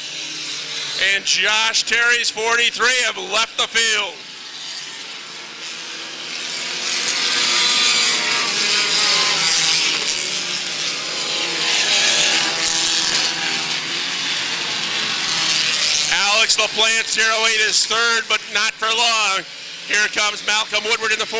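Race car engines rise and fall in pitch as cars pass close by.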